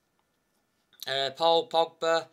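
A young man speaks loudly, close to the microphone.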